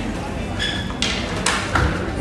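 A young woman bites into fruit with a crunch.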